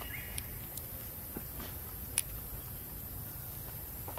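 Dry leaves rustle as a young monkey walks over them.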